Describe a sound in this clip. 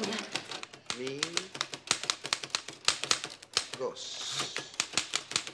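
A typewriter clacks rapidly.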